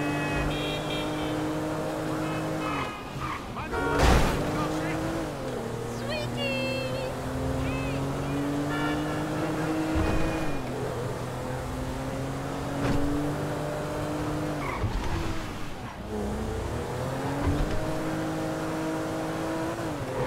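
A car engine hums steadily, rising and falling in pitch as it changes gear.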